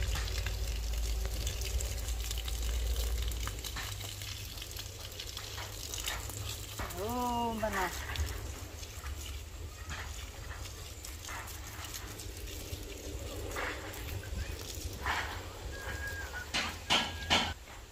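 Water pours from a hose and splashes onto soil.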